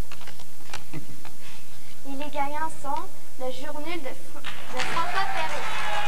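Paper rustles and crackles as an envelope is opened.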